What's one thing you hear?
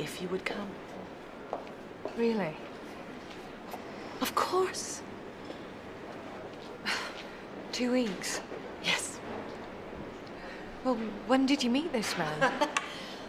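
A second woman speaks firmly with animation, close by.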